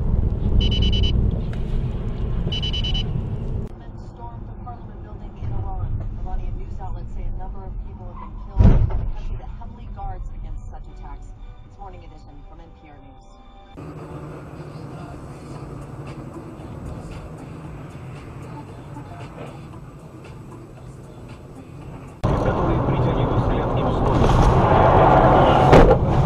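A car engine hums and tyres rumble steadily on a road.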